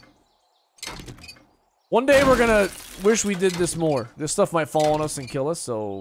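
A wrench clangs against a metal crate.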